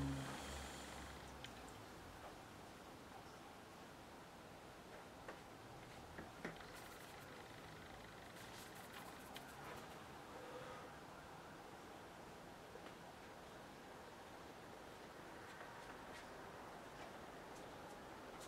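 A watercolour brush strokes softly across paper.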